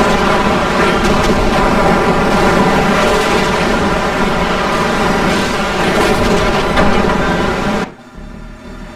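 Dense gunfire and explosions crackle and boom in a battle.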